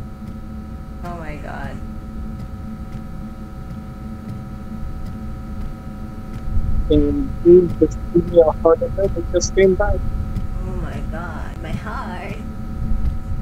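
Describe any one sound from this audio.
A young woman speaks softly and playfully into a microphone.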